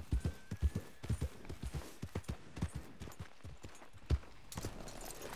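Horse hooves thud steadily on soft ground.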